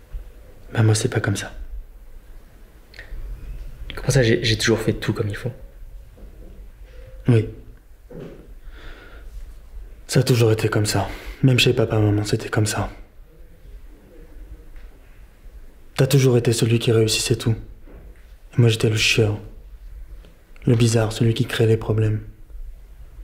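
A man speaks calmly nearby in short bursts with pauses.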